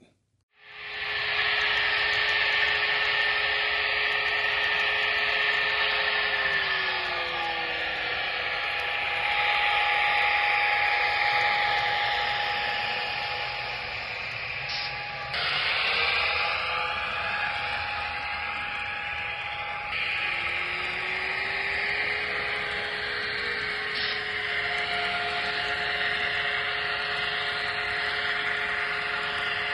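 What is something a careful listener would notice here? A small model diesel locomotive's engine hums and drones steadily, rising and falling in pitch.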